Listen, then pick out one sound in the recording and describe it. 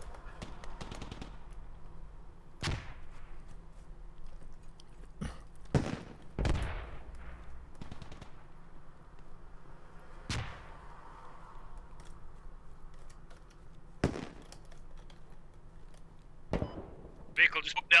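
Footsteps crunch through dry grass and dirt.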